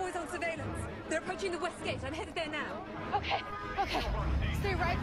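A crowd screams in panic.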